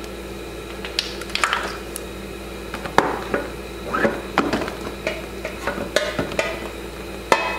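Metal parts clink and tap against each other.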